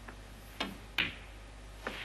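Snooker balls knock together with a sharp clack.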